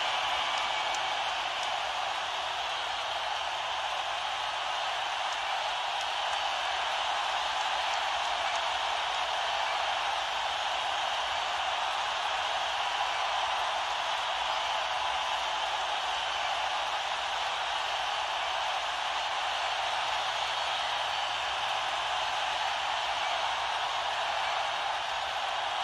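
A large crowd cheers and roars in a big echoing hall.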